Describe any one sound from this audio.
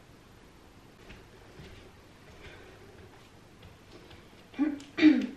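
Bare feet patter softly on a wooden floor.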